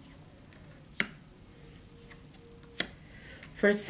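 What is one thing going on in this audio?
Cards tap and slide on a table.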